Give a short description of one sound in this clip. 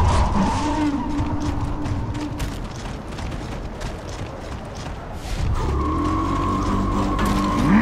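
Heavy boots thud on rough ground as a soldier runs.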